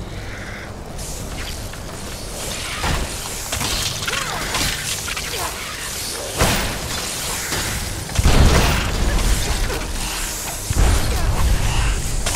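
Magical energy swirls and whooshes loudly.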